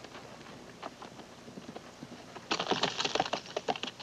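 A horse's hooves thud on grass.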